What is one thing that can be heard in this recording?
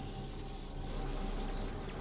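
Electricity crackles and buzzes.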